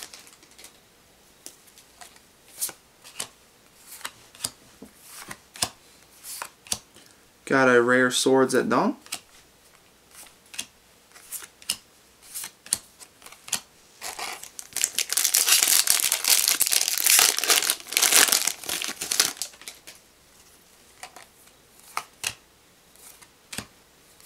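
Trading cards are flicked and shuffled in hands.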